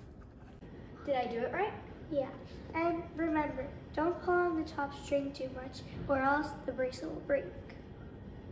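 A young girl speaks calmly and clearly, close by.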